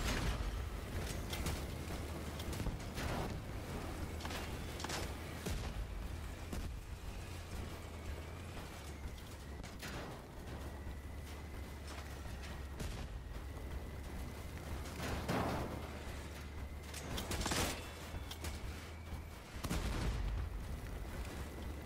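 A heavy machine's engine rumbles low and steady.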